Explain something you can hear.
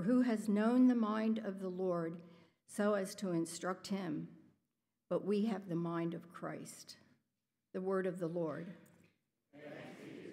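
A woman reads aloud calmly into a microphone in an echoing hall.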